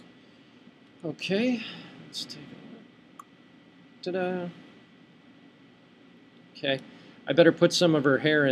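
A young woman talks calmly and close to a microphone, in short bursts with pauses.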